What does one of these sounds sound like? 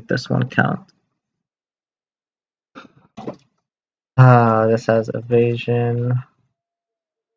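A man speaks into a close microphone in short bursts, drawing out some words.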